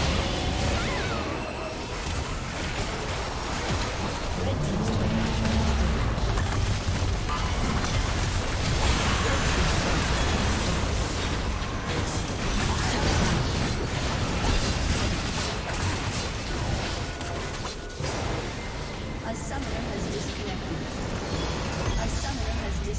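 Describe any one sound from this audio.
Game spells and attacks crackle and boom in a fast-paced fight.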